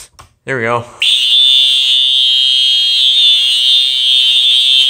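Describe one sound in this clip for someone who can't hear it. A smoke alarm sounds a loud, steady, piercing shriek.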